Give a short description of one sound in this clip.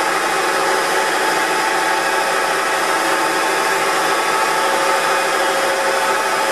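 A lathe hums steadily as it spins.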